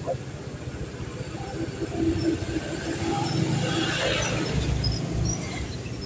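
A large truck rumbles past close by.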